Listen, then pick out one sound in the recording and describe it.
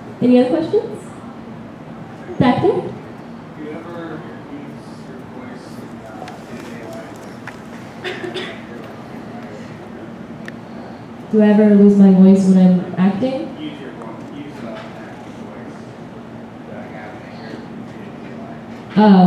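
A young woman talks with animation into a microphone over loudspeakers.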